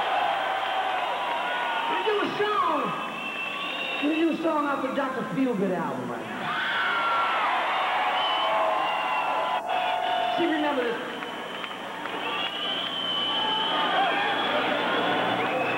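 A guitar wails with bending notes.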